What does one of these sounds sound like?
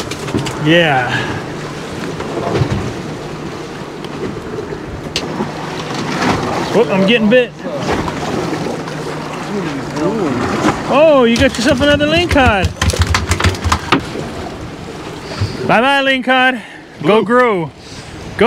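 Water splashes against a boat hull.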